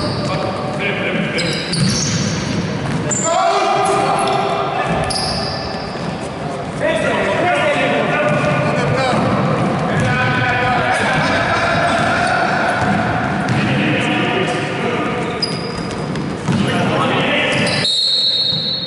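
Sneakers squeak on a wooden court in a large echoing hall.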